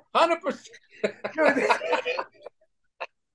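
A second middle-aged man laughs heartily into a microphone.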